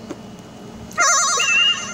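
Upbeat electronic game music starts playing.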